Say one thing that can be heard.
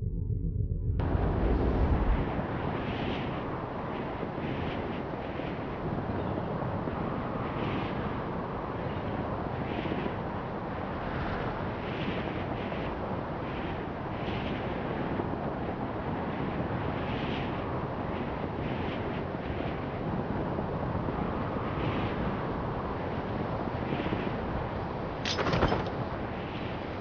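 Wind rushes loudly past a hang glider in flight.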